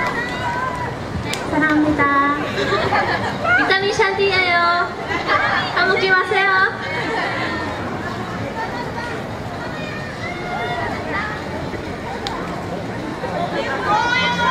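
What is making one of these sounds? Young women speak by turns through microphones and a loudspeaker, outdoors.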